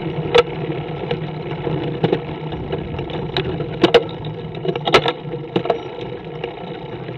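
Wind rushes steadily past a moving rider.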